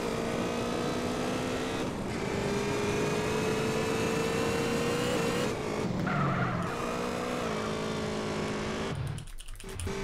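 A motorcycle engine drones steadily, shifting pitch as it speeds along.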